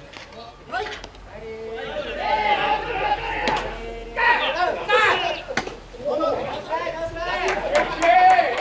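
Young men shout and chant loudly in the open air.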